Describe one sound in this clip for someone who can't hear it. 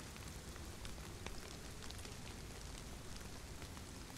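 A small fire crackles.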